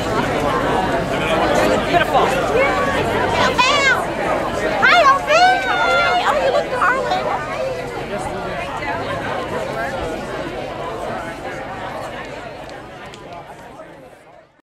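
A crowd of men and women chatter and call out close by, outdoors.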